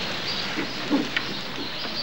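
Animals rustle through dry leaves.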